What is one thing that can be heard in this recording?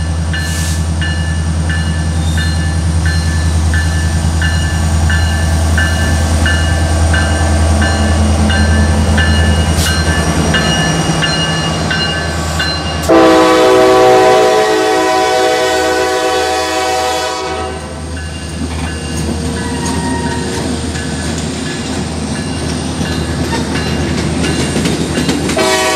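Diesel locomotives rumble and drone as a train approaches.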